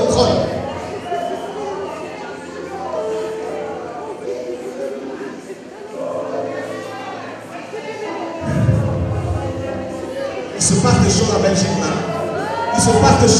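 A crowd of men and women pray aloud at once, their voices overlapping.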